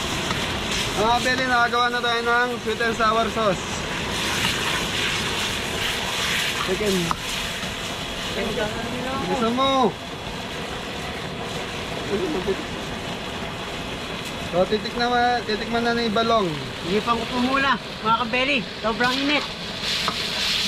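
A man talks through a face mask.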